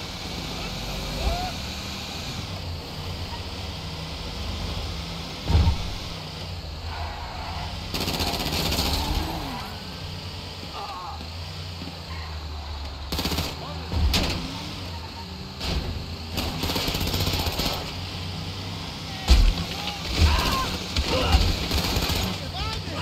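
A large truck's tyres roll over the road.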